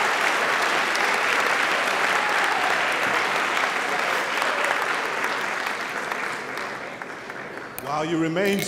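An audience murmurs and applauds in a large hall.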